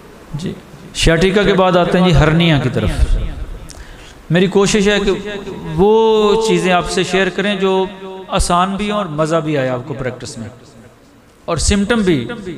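A man speaks with animation into a microphone, in a room with some echo.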